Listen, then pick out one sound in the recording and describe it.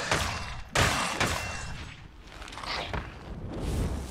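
Bones clatter as skeletons break apart.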